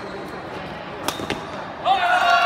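A racket smashes a shuttlecock with a sharp crack.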